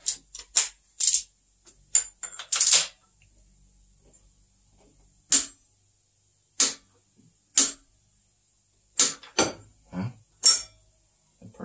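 A ratchet wrench clicks sharply in short bursts.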